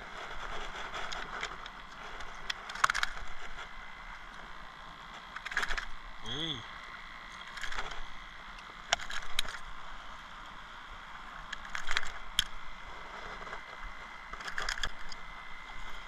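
Metal pliers and a fish gripper click and clack.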